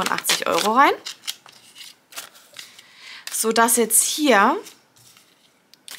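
Paper banknotes rustle and crinkle close by.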